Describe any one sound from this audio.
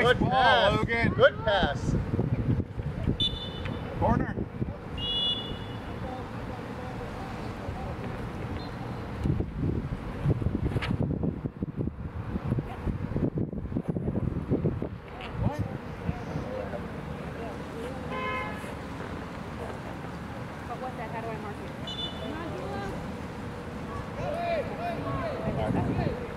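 Young girls shout and call out to each other outdoors.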